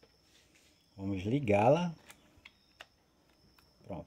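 A plug is pulled from a socket with a click.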